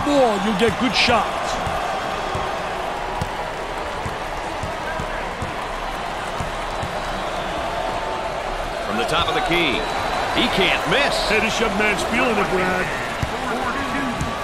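Basketball shoes squeak sharply on a wooden court.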